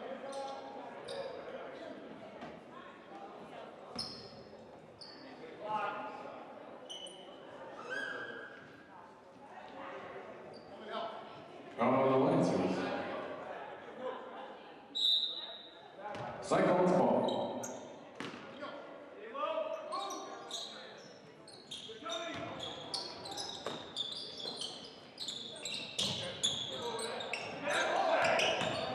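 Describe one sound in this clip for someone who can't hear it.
A crowd of spectators murmurs and calls out in a large echoing gym.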